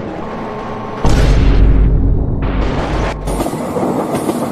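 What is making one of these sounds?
A train smashes into a truck with a heavy crash.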